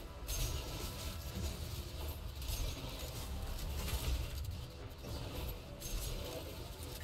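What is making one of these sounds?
Gunfire blasts rapidly in a video game.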